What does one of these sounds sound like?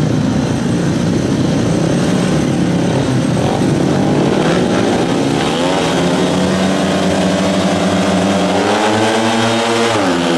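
Motorcycle engines rev loudly and steadily, rising in pitch.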